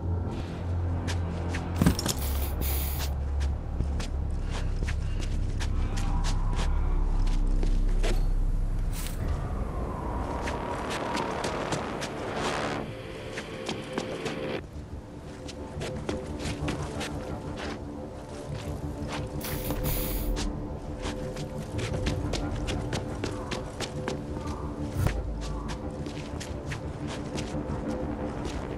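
Footsteps walk steadily on hard ground.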